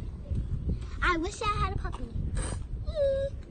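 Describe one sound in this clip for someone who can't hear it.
A young girl speaks brightly close by.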